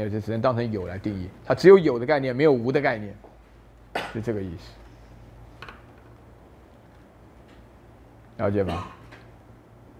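A middle-aged man lectures through a microphone, speaking calmly with pauses.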